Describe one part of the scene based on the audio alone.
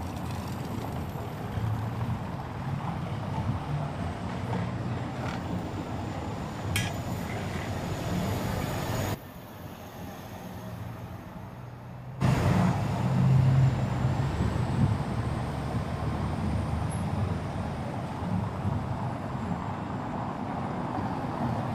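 Cars drive past on cobblestones.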